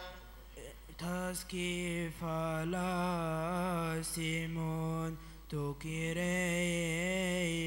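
A man sings a solo chant through a microphone.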